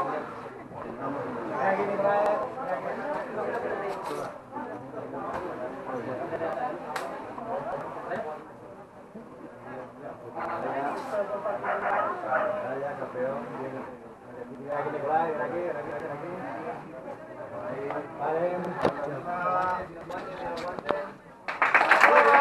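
A man talks calmly nearby, in a room that echoes.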